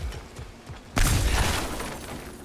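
A wooden crate smashes apart with a loud crack.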